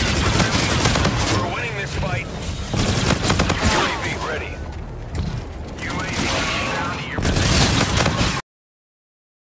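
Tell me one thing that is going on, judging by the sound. Automatic gunfire rattles in quick bursts.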